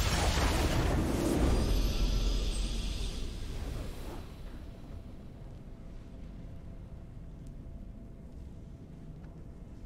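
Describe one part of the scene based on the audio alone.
A triumphant victory fanfare swells.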